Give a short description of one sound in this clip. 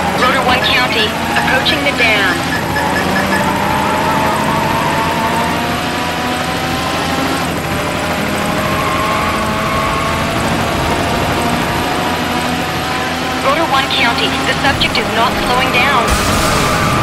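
Tyres screech as a car skids through corners.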